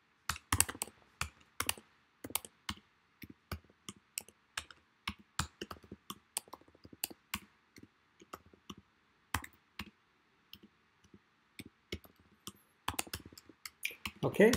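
Keyboard keys click in quick bursts of typing.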